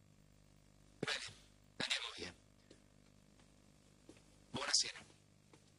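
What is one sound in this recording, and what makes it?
A man speaks in short, sharp bursts close by.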